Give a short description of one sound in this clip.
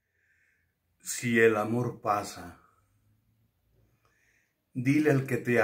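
An older man speaks with animation close to a microphone.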